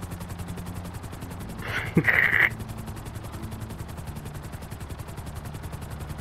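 Helicopter rotor blades chop rapidly and steadily overhead.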